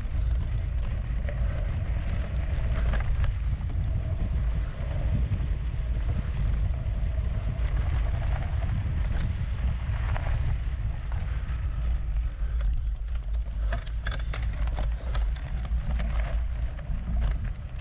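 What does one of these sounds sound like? Bicycle tyres crunch over a dirt trail.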